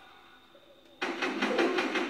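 A rifle fires in rapid shots.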